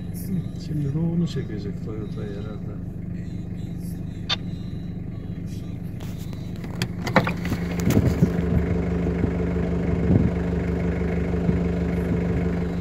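A pickup truck's engine runs with a steady hum.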